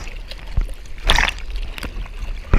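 A wave breaks with a rushing roar.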